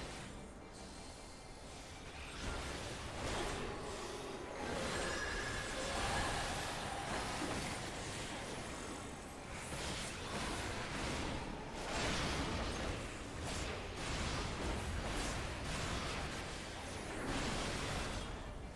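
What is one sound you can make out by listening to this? Magical blasts whoosh and crash again and again in a battle.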